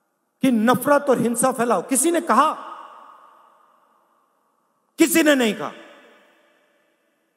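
A man speaks forcefully into a microphone, his voice echoing through a large open space.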